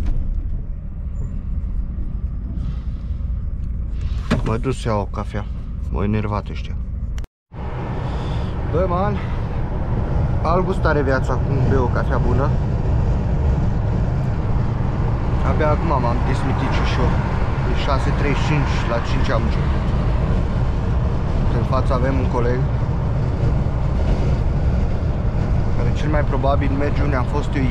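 A truck engine rumbles steadily, heard from inside the cab.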